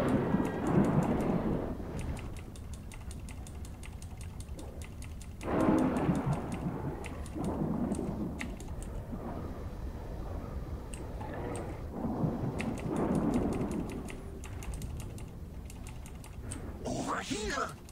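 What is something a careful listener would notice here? Rapid magical attack sounds crackle and ping during a battle.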